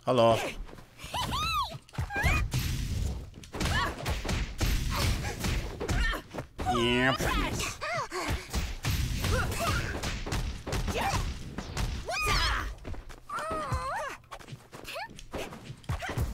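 Punches and hits land in quick bursts in a fighting game.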